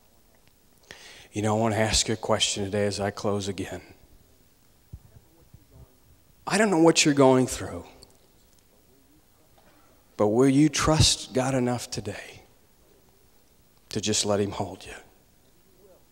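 A man speaks with emphasis into a microphone, in short bursts with pauses, heard through a loudspeaker in a large room.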